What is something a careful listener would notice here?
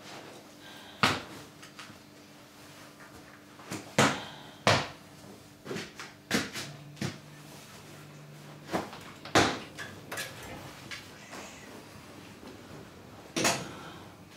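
Sharp knocks and bumps sound now and then.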